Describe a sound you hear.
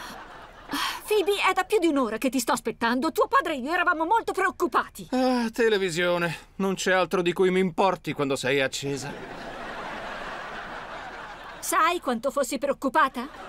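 A woman speaks loudly and in exasperation.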